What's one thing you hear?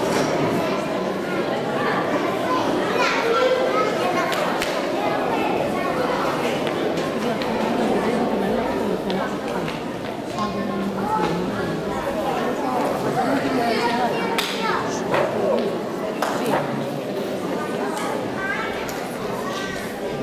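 A crowd of people chatters and calls out in a large echoing hall.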